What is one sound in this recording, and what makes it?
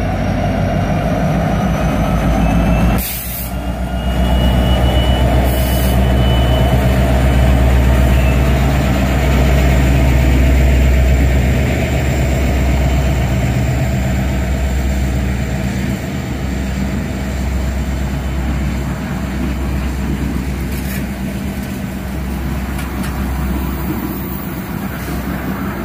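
Heavy train wheels clatter and squeal along the rails.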